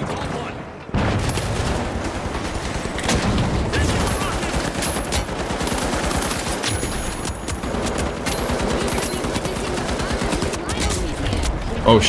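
Gunfire rattles in quick bursts from a video game.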